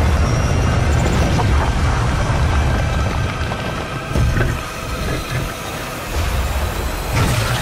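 Flames roar and crackle in a fiery explosion.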